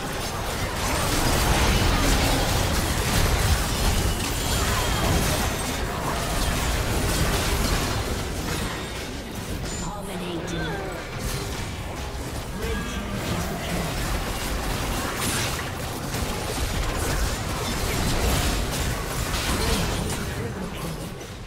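Game spell effects crash and explode rapidly.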